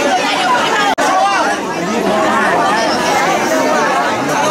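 A large outdoor crowd chatters, with many people talking over one another.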